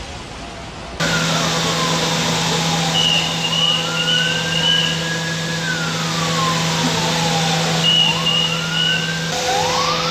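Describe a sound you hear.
A pump engine hums steadily.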